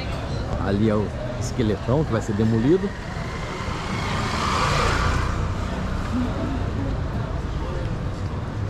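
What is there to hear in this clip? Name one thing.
A crowd of passers-by murmurs in a busy outdoor street.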